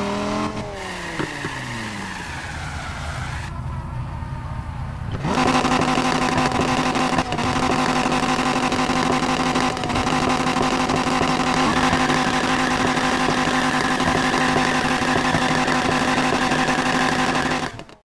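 A sports car engine revs loudly and roars.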